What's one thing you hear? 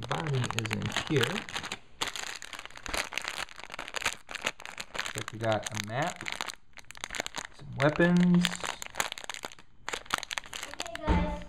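Small plastic pieces rattle inside a bag.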